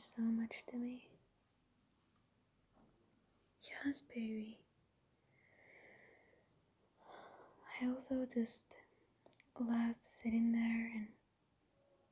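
A young woman speaks softly and intimately, close to a microphone.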